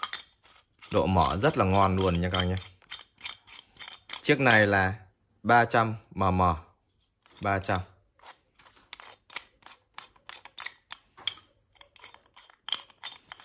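A metal wrench's adjusting nut rattles and clicks as a hand turns it.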